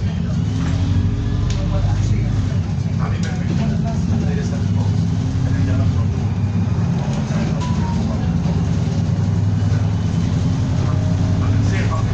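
A diesel single-deck bus engine drones, heard from inside, as the bus cruises along a road.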